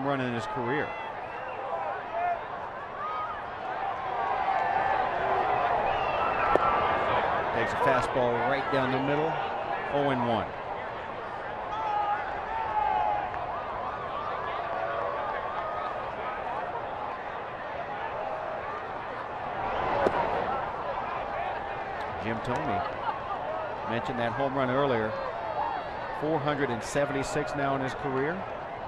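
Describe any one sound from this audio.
A large crowd murmurs in an open-air stadium.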